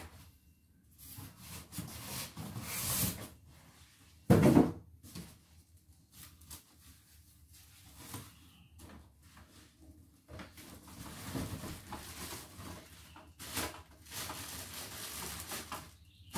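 A plastic bag rustles and crinkles nearby.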